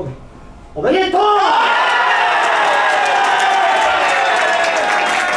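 A crowd of young men chants loudly indoors.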